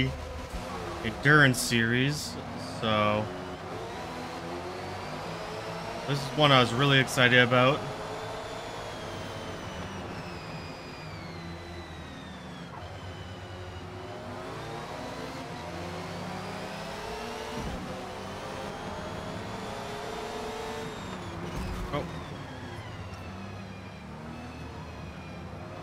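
A racing car engine roars and revs up and down as it accelerates and shifts gears.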